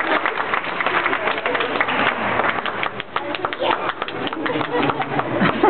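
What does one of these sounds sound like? Young people clap and stomp in rhythm.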